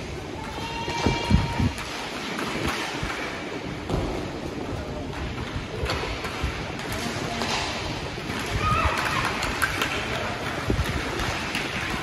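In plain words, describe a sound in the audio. Children shout and call out during play.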